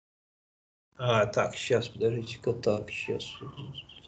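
A man lectures calmly through a microphone in an online call.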